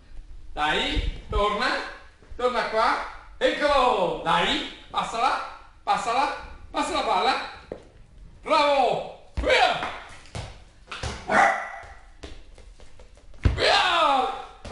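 A ball bounces and thuds on a hard floor.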